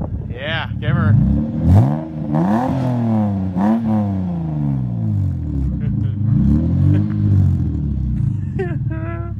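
A car engine revs up sharply and drops back again and again.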